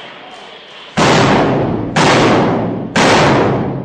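Loud blasts boom close by, three times in a row.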